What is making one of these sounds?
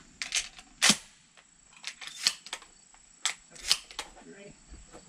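Metal parts of a shotgun click and clack as it is loaded.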